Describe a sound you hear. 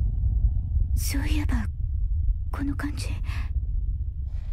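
A young woman speaks softly and hesitantly, close by.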